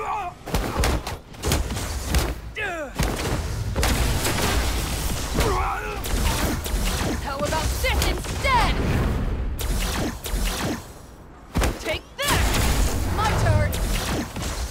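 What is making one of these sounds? Sword slashes and impacts clash rapidly in a fight.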